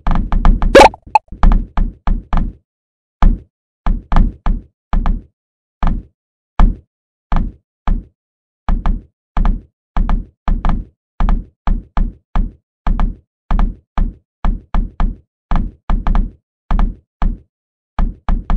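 Short popping game sound effects repeat in quick bursts.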